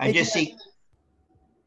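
An elderly man speaks briefly over an online call.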